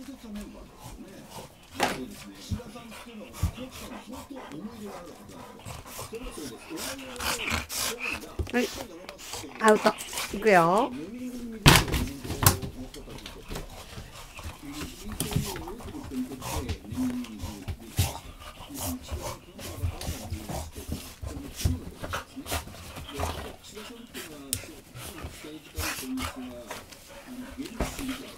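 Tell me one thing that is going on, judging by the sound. Dogs growl and grumble playfully while wrestling.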